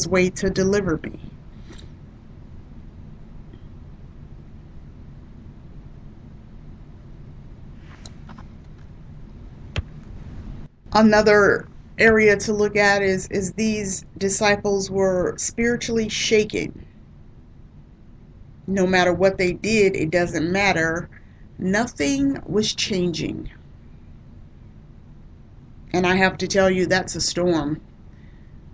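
A woman speaks through a microphone in short bursts with pauses.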